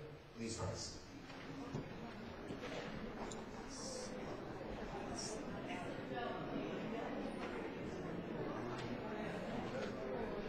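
A crowd of people murmurs and shuffles about in a large echoing hall.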